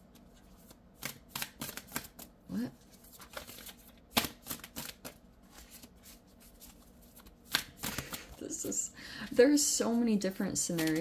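Playing cards riffle and slap softly as a deck is shuffled close by.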